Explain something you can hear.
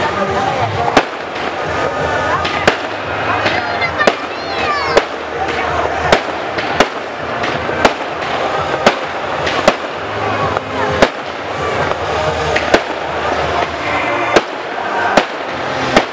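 Fireworks burst with loud, sharp bangs again and again.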